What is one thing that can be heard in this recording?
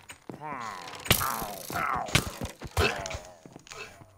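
A sword strikes a creature with sharp hits.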